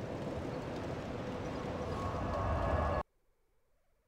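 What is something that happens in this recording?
A magical shimmering whoosh swells and cuts off.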